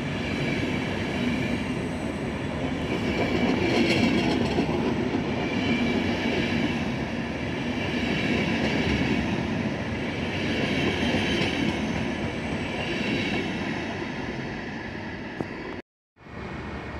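A passenger train rolls past close by, its wheels rumbling and clattering over the rail joints.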